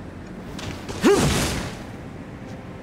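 Flames whoosh and crackle in a burst.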